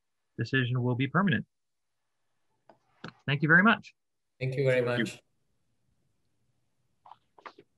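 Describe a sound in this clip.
A man talks calmly through an online call.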